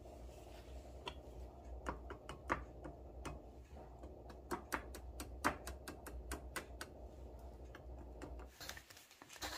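A metal ladle clinks and scrapes against a tin can.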